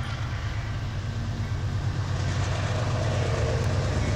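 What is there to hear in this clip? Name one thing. A diesel locomotive rumbles closer, growing steadily louder.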